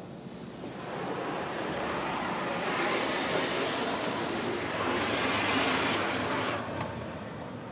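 Water sprays and drums against the car windows.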